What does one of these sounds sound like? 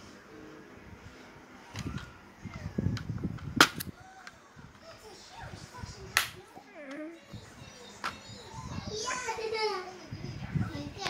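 Plastic disc cases click and clack as a person handles them.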